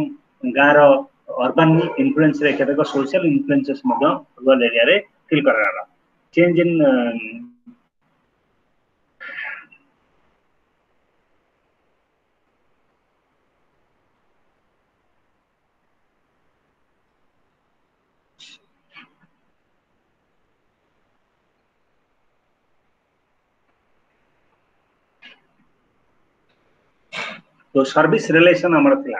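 A man speaks close to a microphone, heard through an online call.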